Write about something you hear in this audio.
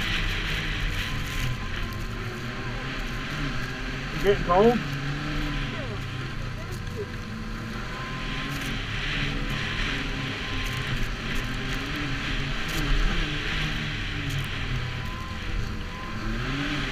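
A snowmobile engine drones steadily up close.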